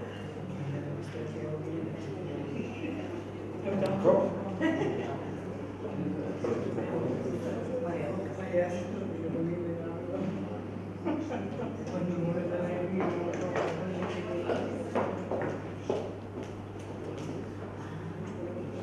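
People in an audience murmur and chat quietly in an echoing hall.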